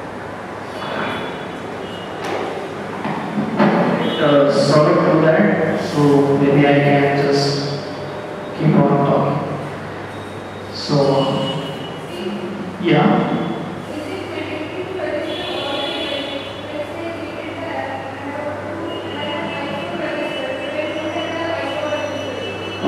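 A man speaks into a microphone over loudspeakers in an echoing room.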